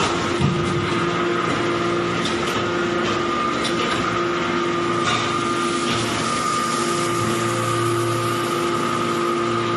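Metal-chip briquettes scrape along a steel chute.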